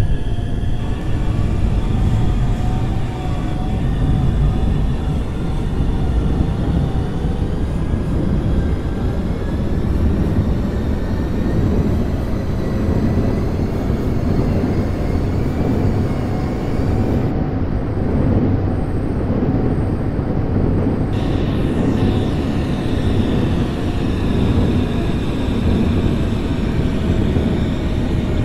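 A train's electric motor whines, slowly shifting in pitch.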